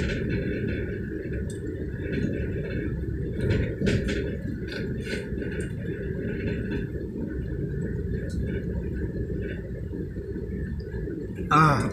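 A motorcycle engine hums close ahead.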